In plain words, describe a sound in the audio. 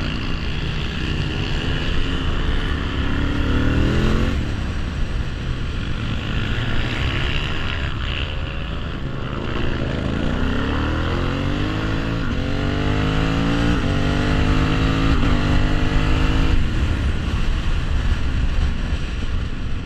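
A motorcycle engine revs up and drops as the gears shift.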